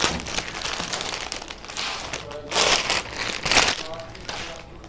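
A plastic wrapper crinkles and rustles.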